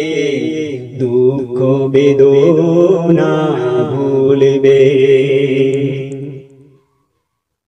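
A man sings a slow melody close to a microphone.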